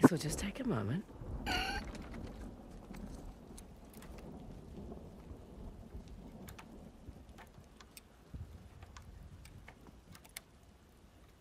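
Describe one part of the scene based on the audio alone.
A metal lock rattles softly as it is picked.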